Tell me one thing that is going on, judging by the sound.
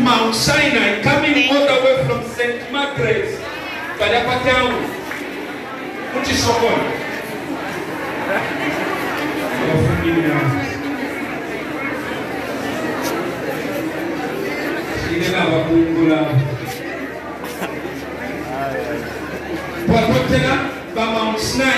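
A crowd of men and women talks and murmurs all around in a large echoing hall.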